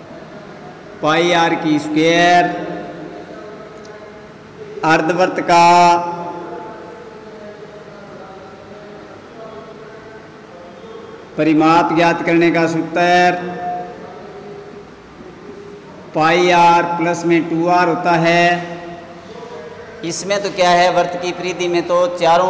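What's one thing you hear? A man speaks calmly and clearly in short phrases, close by in a slightly echoing room.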